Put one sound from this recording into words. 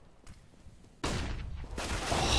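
A grenade bursts with a sudden loud bang.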